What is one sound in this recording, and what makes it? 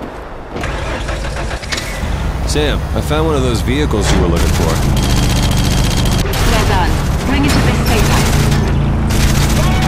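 A truck engine roars and revs over rough ground.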